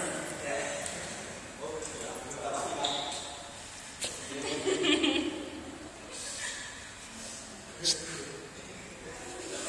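Young women talk and laugh nearby in an echoing room.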